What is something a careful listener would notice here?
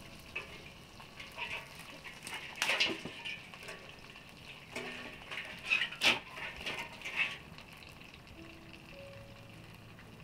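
A wood fire crackles.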